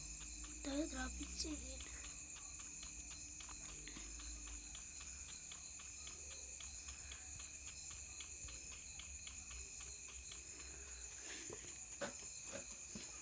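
Quick running footsteps thud steadily over grass.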